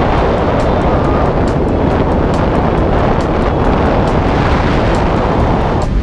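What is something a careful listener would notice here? Strong wind roars loudly and steadily past the microphone in free fall.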